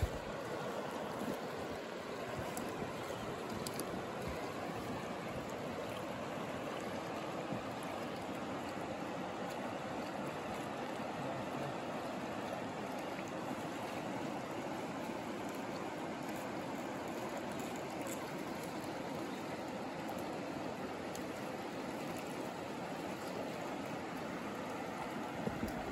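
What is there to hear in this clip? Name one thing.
A river rushes and gurgles steadily close by.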